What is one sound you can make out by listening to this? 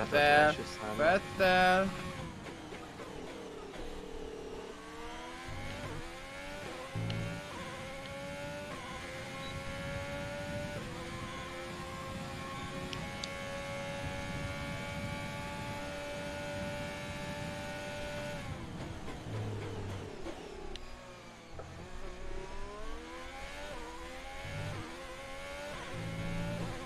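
A racing car engine whines and revs up and down through the gears.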